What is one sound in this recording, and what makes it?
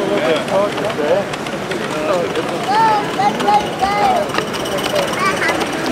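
A small model train rattles along its track.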